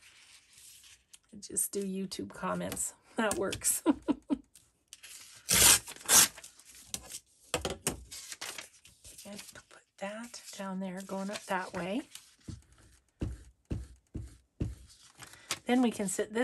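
Paper rustles and slides as sheets are moved.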